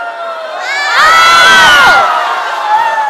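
A young woman shrieks loudly.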